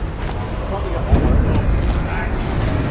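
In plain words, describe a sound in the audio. A sudden whoosh rushes past.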